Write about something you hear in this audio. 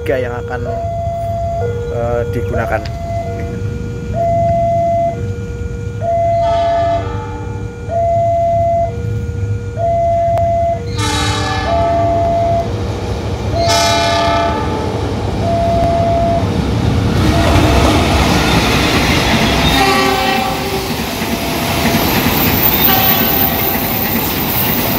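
A railway crossing bell rings in a two-tone ding-dong.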